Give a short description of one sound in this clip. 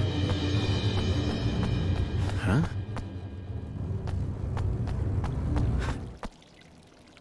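Footsteps run quickly across a stone floor.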